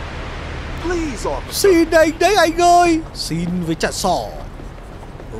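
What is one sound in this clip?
A young man answers pleadingly, close by.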